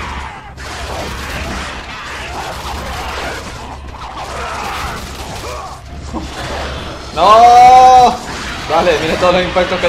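Blades strike enemies with heavy thuds.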